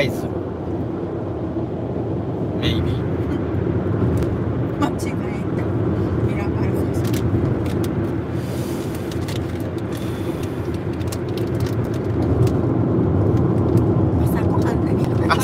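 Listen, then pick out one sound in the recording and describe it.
A car engine and road noise rumble steadily.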